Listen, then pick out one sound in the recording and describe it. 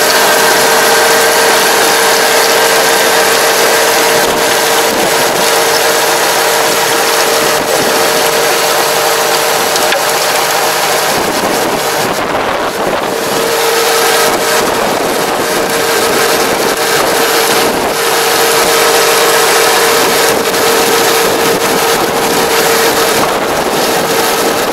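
A rotary tiller churns loudly through soil.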